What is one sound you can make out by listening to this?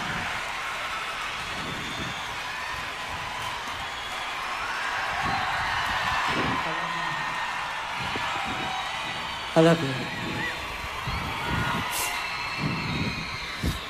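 Shoes stomp on a stage floor.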